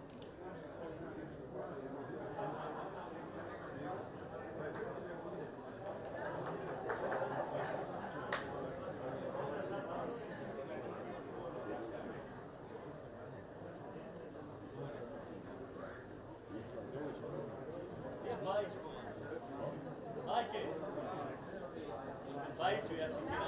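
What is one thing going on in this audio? A crowd murmurs and calls out in an open stadium.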